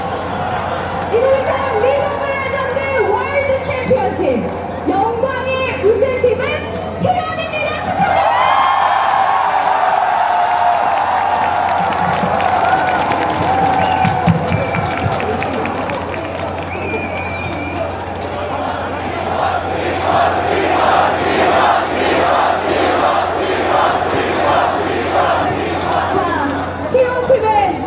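Music plays loudly through loudspeakers.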